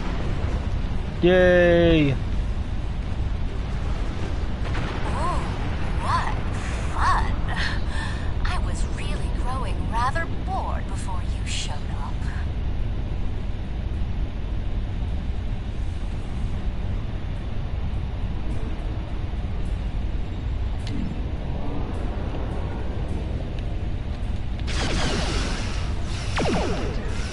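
A spaceship engine hums with a steady low rumble.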